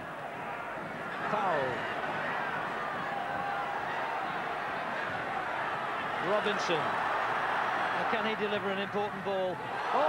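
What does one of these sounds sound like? Fans in the crowd chant and whistle loudly.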